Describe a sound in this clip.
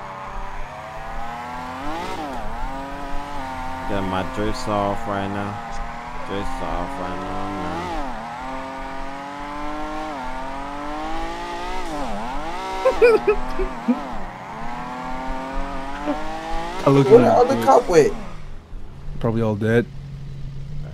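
A car engine revs hard, rising and falling as the car drifts.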